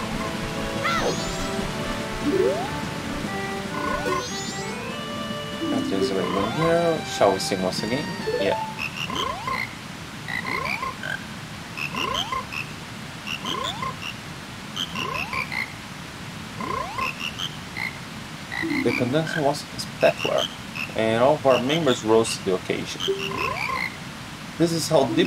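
Video game music plays with bright, tinkling notes.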